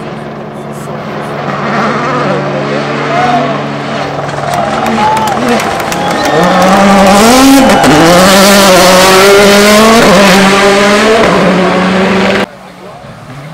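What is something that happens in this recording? A rally car engine revs hard and roars past up close.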